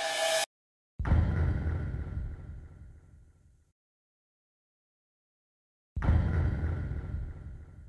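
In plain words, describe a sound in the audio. A deep electronic boom sounds and fades.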